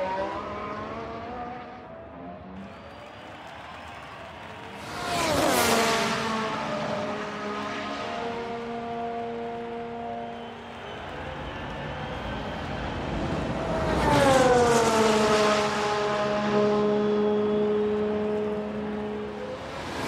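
A racing car engine whines at high revs.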